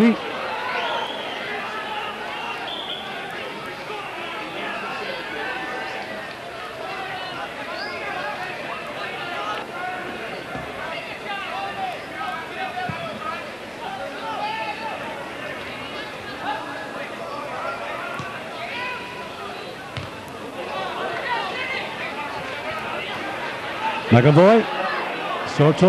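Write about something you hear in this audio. A large crowd of spectators chants and sings outdoors.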